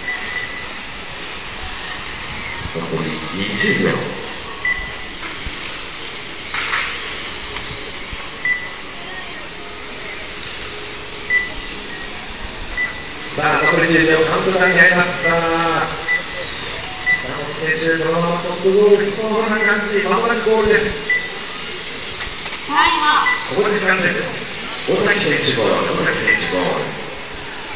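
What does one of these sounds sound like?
Small electric model cars whine as they race around a track.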